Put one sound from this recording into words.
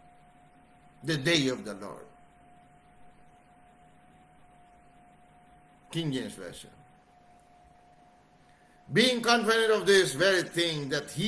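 A middle-aged man speaks calmly into a nearby microphone in short bursts.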